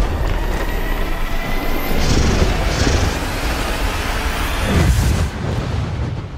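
A huge beast roars with a deep, rumbling growl.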